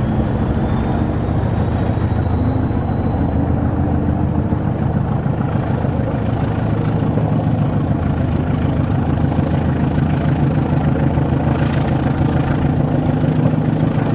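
Wind rushes past a moving train.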